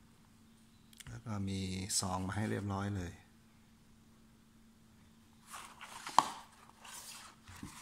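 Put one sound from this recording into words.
A fabric sheath rustles as fingers rub it.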